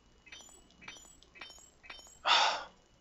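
Electronic menu blips sound several times.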